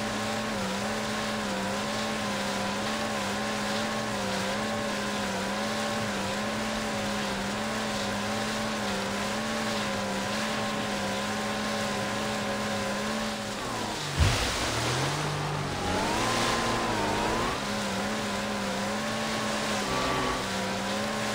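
Water splashes and hisses under a speeding jet ski.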